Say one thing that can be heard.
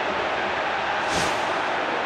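A whoosh sweeps past quickly.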